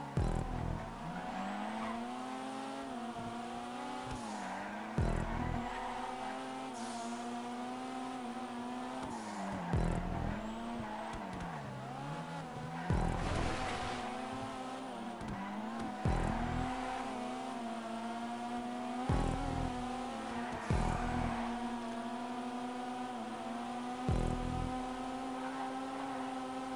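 Car tyres screech as the car slides around bends.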